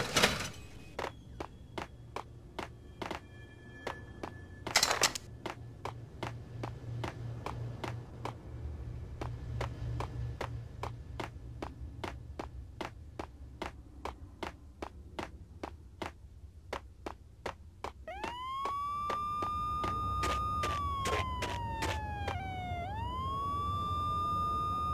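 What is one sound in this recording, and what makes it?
Footsteps tap quickly and evenly on a hard floor.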